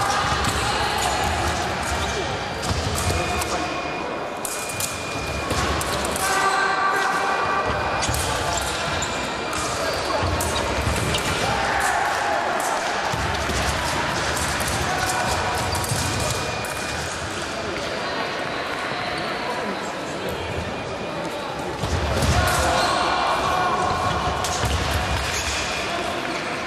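Shoes squeak and thud on a hard floor.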